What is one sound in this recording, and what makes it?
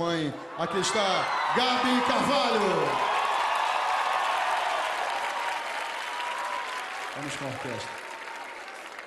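A large crowd cheers and shouts loudly in a big hall.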